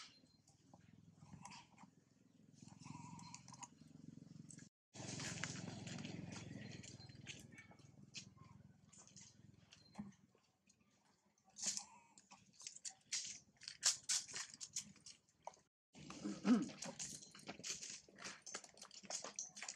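Monkeys' feet patter and rustle over dry leaves.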